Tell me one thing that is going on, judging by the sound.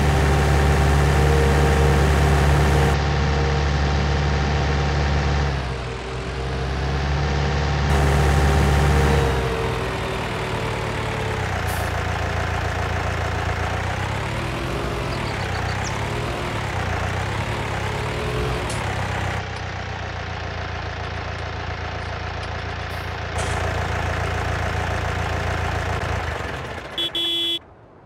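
A tractor engine rumbles steadily and revs up and down.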